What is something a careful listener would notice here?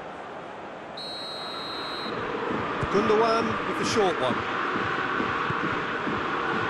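A stadium crowd roars steadily, swelling louder.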